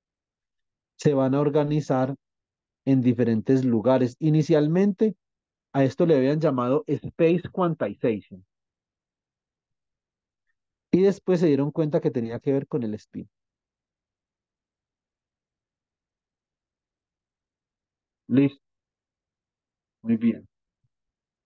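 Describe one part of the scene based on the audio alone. A man explains calmly over an online call, heard through a microphone, with pauses.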